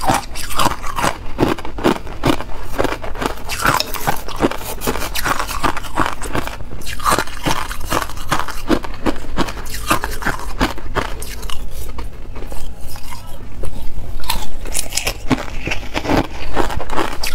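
A young woman crunches ice loudly close to a microphone.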